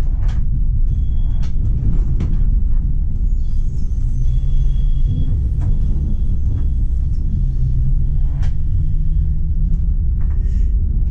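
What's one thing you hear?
A tram rumbles steadily along rails.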